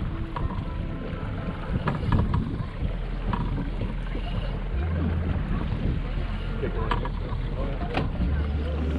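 Wind rushes across the microphone outdoors on open water.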